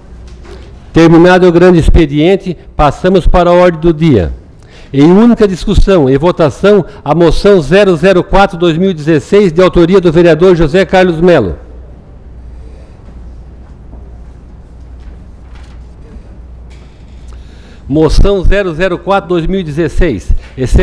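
A middle-aged man speaks calmly into a microphone, heard over a loudspeaker.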